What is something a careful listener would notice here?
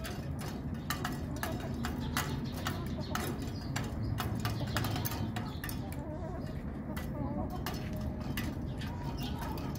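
Chickens peck and tap at metal feeding cups.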